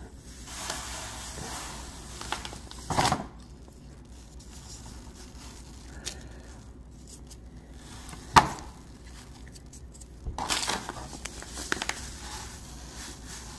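A plastic backing sheet crinkles in a hand.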